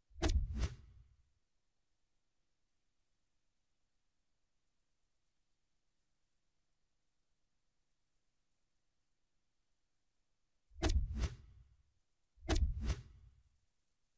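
A game menu plays short whooshing clicks as its pages change.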